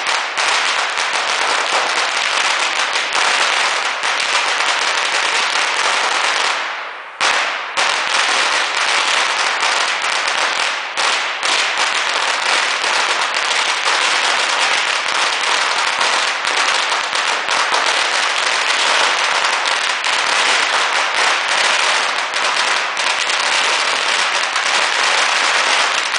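Strings of firecrackers crackle and pop in rapid bursts close by, echoing off buildings.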